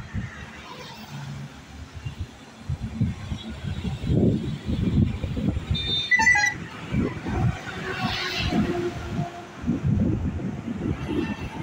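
Vehicles rush past on a nearby road.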